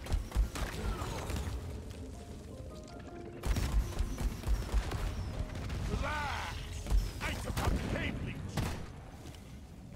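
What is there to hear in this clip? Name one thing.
A heavy gun fires in loud rapid bursts.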